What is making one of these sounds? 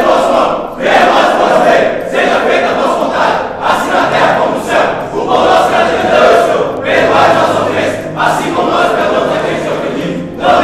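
A group of young men chant loudly together in an echoing hall.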